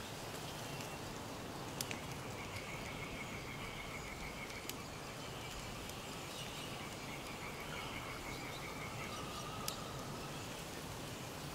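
A shallow stream trickles and splashes steadily over rocks.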